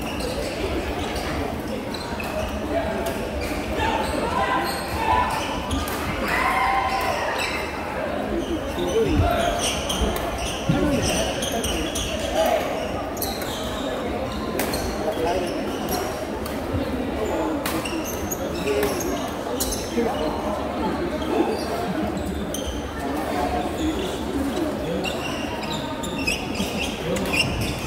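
A crowd of young people chatters steadily in a large echoing hall.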